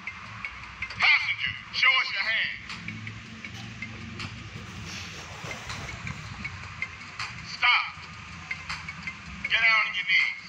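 A man shouts commands sharply.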